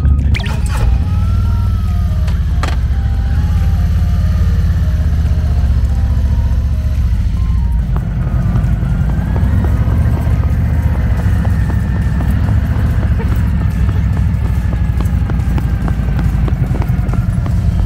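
A motorcycle engine idles with a deep, steady rumble close by.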